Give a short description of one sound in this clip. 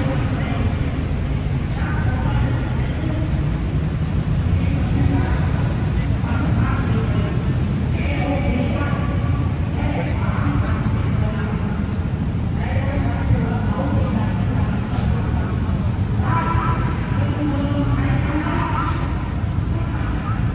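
City traffic rumbles steadily close by.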